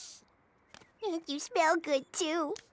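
A young boy giggles in a high, wobbling voice close by.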